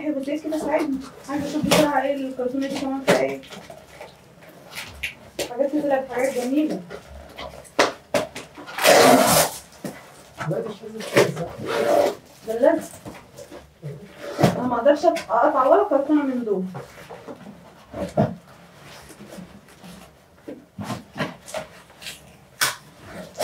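Cardboard rustles and scrapes as a box is opened.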